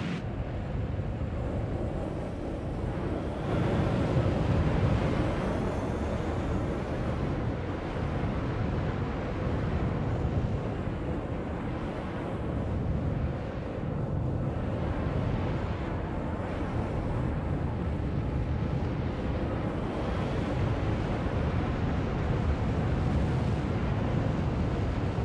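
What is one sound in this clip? A spacecraft engine roars steadily, swelling and easing as the craft turns.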